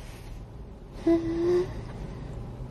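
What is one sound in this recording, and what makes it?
An older woman laughs close by.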